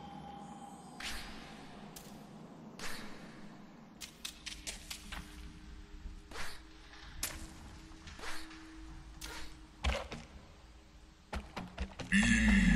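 Small light footsteps patter as a creature runs along the ground.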